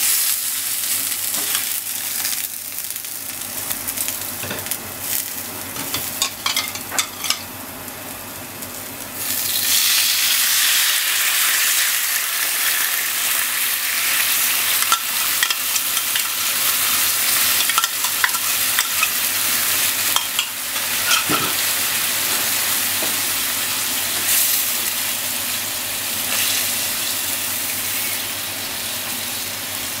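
Chopsticks tap and scrape against a frying pan.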